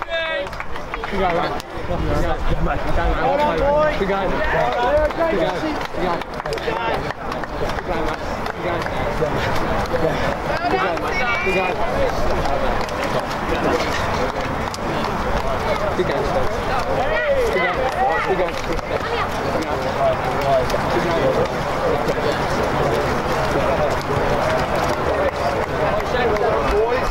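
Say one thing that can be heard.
Teenage boys chatter and talk over one another close by.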